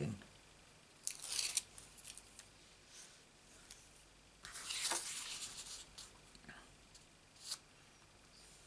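Paper rustles and slides under a hand.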